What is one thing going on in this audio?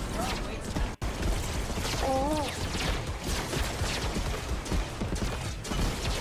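Gunshots crack and blasts boom in a video game.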